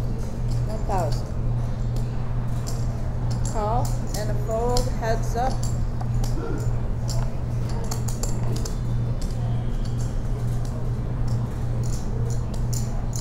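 Poker chips click and clack together on a table.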